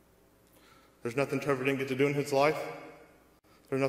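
A man speaks into a microphone over a loudspeaker in a large echoing hall, pausing between phrases.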